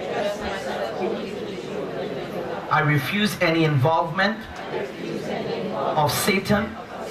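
A crowd of people murmur and pray aloud together.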